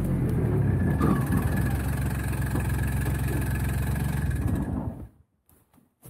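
A small utility vehicle's engine idles with a low rumble, then cuts off.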